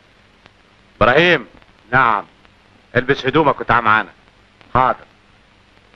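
A middle-aged man speaks with feeling, close by.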